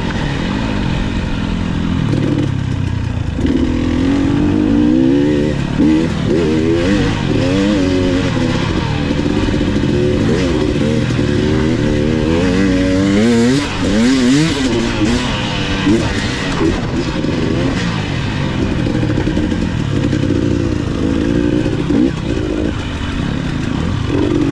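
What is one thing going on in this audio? Tyres crunch over a dirt trail with occasional bumps and knocks.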